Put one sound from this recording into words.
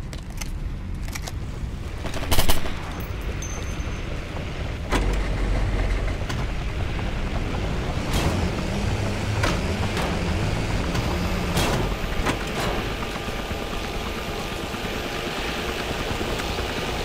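A helicopter engine hums and its rotor thrums steadily.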